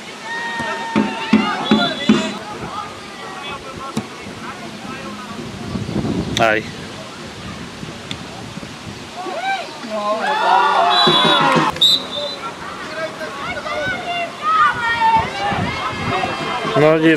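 Young men shout to each other across an open football pitch.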